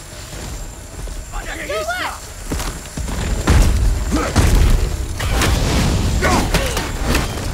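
An axe strikes stone with heavy, sudden blows.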